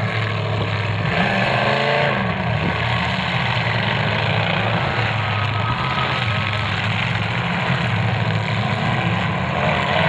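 Metal crunches as cars crash into one another.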